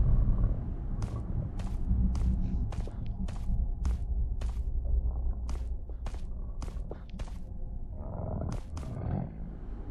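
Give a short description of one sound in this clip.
Footsteps thud steadily on hard ground and wooden boards.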